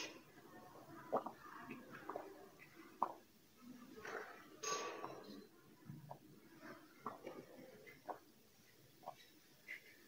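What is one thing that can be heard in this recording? A young woman gulps a drink.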